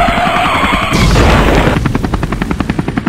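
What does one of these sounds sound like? A vehicle crashes into a motorbike with a loud bang.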